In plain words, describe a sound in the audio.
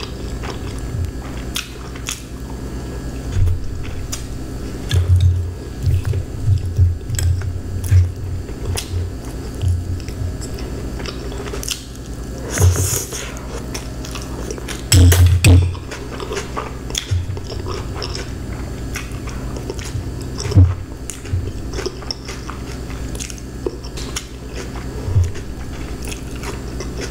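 A woman chews food with wet, crunchy sounds close to a microphone.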